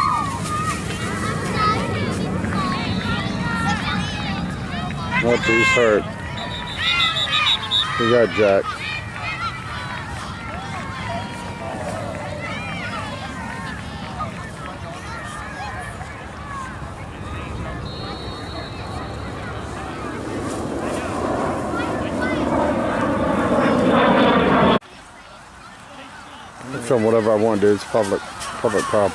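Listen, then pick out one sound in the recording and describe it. A crowd of spectators talks and cheers outdoors.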